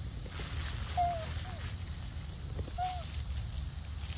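A young monkey gives short, high squeaks.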